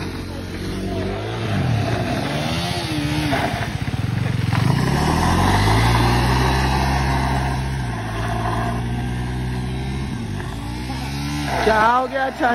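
A single-cylinder sport motorcycle revs hard while drifting on dirt.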